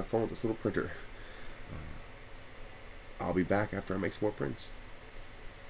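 A man talks casually close to the microphone.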